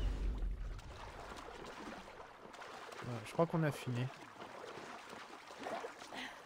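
Water sloshes as a swimmer strokes through it.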